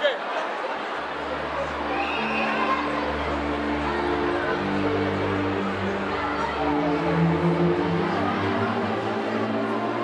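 A crowd of teenage girls and boys sings together loudly.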